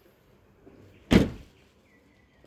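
A car boot slams shut.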